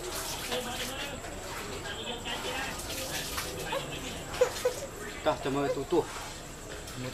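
A baby babbles close by.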